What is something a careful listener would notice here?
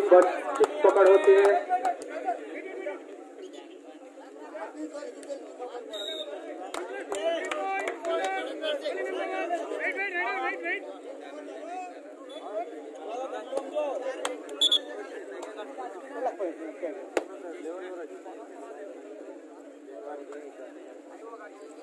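A large outdoor crowd of spectators chatters and shouts.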